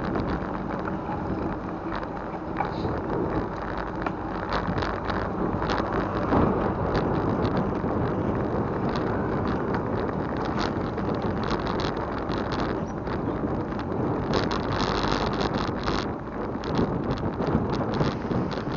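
Bicycle wheels rattle and click over the road.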